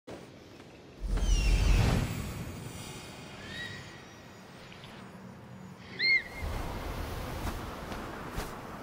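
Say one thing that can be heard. Wind rushes past loudly in gusts.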